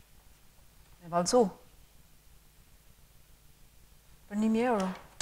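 A young woman speaks a few short words nearby.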